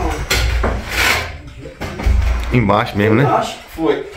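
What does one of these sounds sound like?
Wooden planks scrape and knock against each other.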